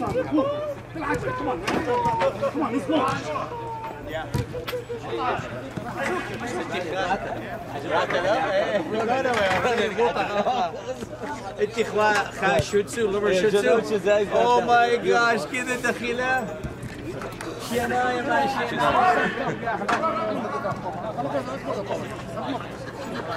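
Men shout and call out to each other across an open field.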